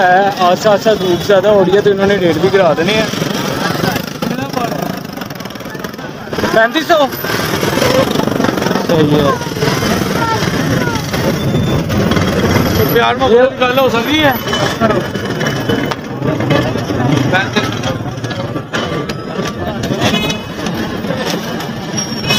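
Several men talk with animation close by, amid a busy outdoor crowd.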